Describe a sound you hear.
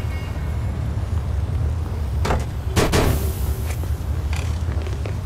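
A car door opens and shuts with a thud.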